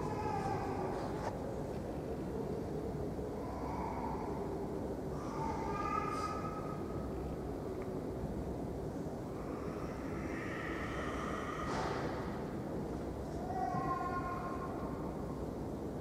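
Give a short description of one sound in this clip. A man chants softly in a low voice in an echoing hall.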